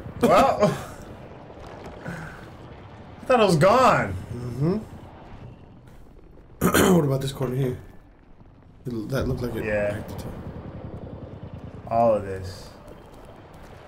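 A second man talks and reacts close to a microphone.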